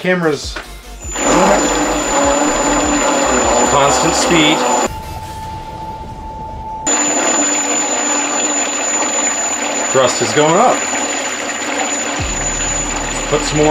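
An electric motor whirs steadily with a high whine.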